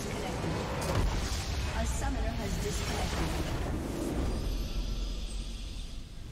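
A large magical blast bursts and roars.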